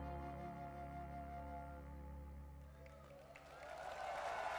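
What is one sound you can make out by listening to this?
A band's keyboards hold a sustained chord that then stops.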